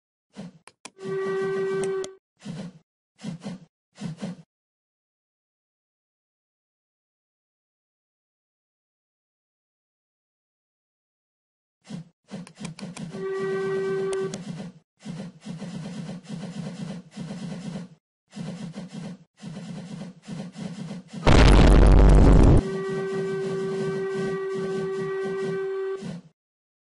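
A steam whistle blows in long, steady blasts.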